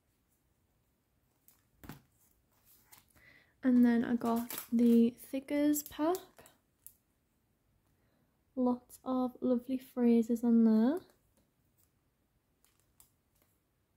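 Plastic packets crinkle and rustle as they are handled.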